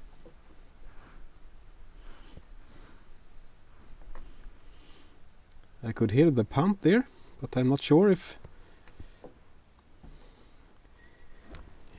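Plastic fittings click as a hose connector is handled.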